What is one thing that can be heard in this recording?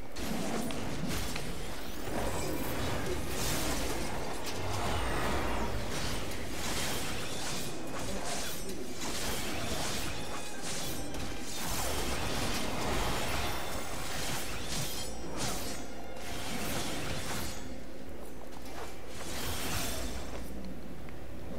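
Magic blasts and sword slashes whoosh and crackle in quick bursts.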